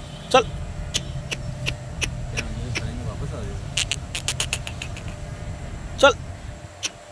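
A bird gives short, harsh calls nearby.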